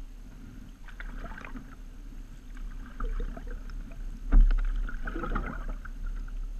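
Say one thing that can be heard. Water splashes and laps against the hull of a kayak.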